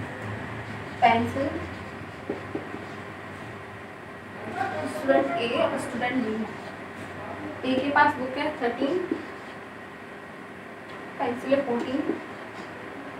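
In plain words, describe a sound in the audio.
A woman speaks in short bursts nearby.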